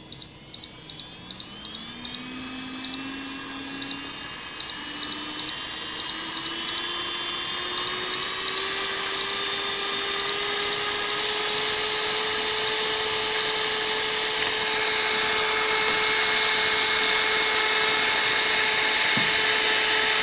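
An electric nail drill whirs, its pitch rising steadily as it speeds up.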